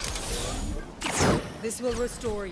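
A glowing orb whooshes and explodes.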